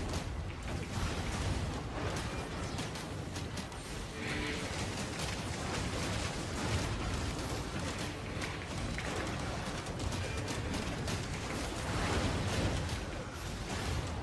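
Game combat effects clash and whoosh in quick bursts.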